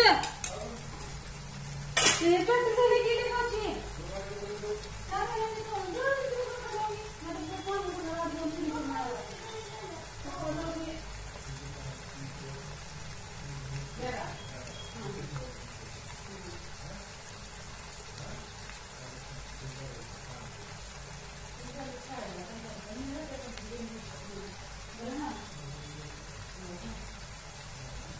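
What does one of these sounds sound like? A pot of stew simmers and bubbles softly.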